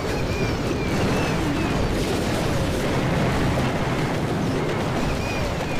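Explosions boom and crackle repeatedly in a busy battle.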